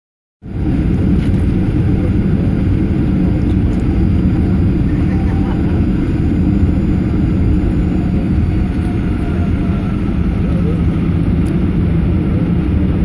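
A vehicle drives along a road with a steady low rumble and wind noise.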